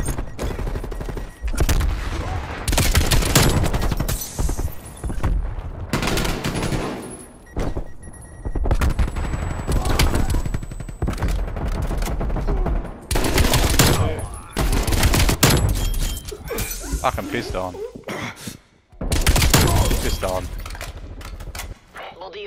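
Rapid gunfire bursts out loudly, again and again.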